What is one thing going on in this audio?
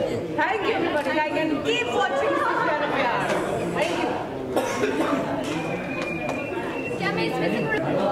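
Several women laugh and chatter cheerfully close by.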